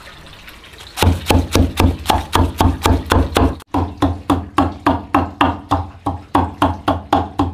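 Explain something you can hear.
A wooden pestle pounds rhythmically in a wooden mortar with dull thuds.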